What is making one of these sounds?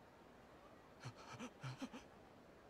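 A man grunts briefly.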